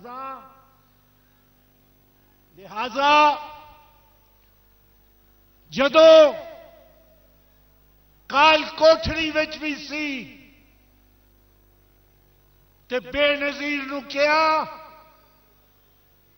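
An elderly man shouts a speech forcefully into a microphone, in loud bursts with pauses.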